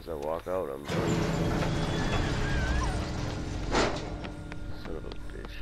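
A heavy gate rumbles and grinds open.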